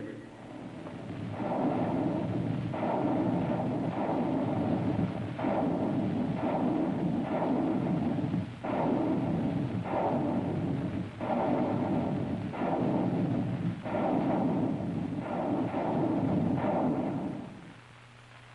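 A rocket roars as it flies.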